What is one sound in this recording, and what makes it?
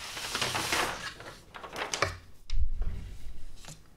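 A large sheet of paper rustles as it is laid flat.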